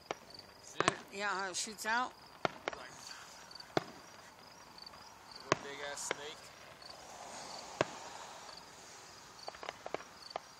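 Fireworks crackle faintly after bursting.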